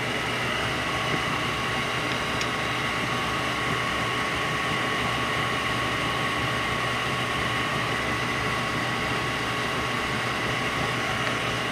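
A screwdriver scrapes and clicks against metal parts.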